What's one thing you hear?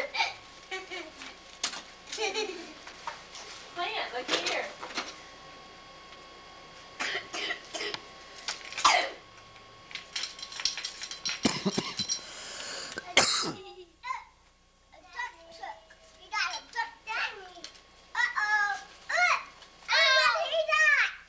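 Young children talk and call out excitedly close by.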